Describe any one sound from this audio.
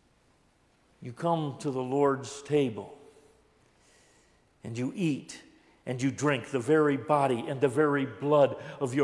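An elderly man speaks with animation through a microphone in an echoing hall.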